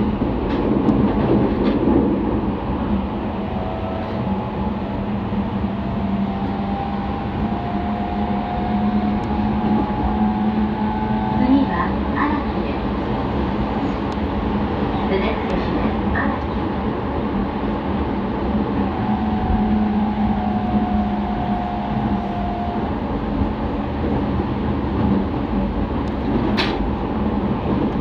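An electric commuter train runs along the track, heard from inside the carriage.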